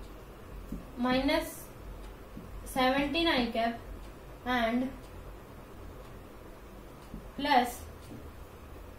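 A young woman speaks in short phrases, close by.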